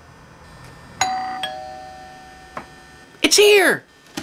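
A doorbell chimes.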